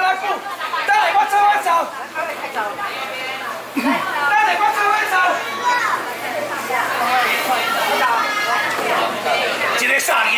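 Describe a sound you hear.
A middle-aged man talks loudly with animation, close by.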